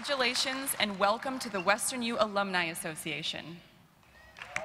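A young woman speaks into a microphone in a large hall.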